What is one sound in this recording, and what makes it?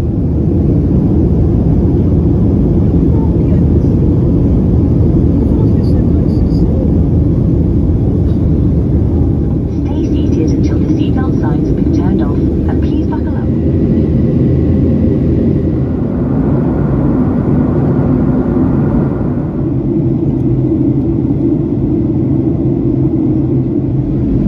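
A jet engine roars steadily from inside an airliner cabin.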